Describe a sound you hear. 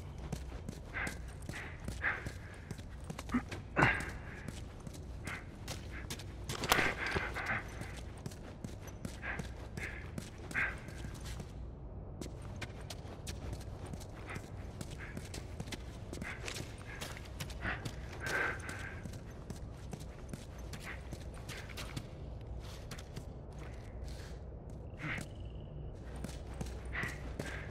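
Footsteps crunch slowly over a gritty floor.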